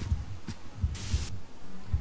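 Static hisses loudly.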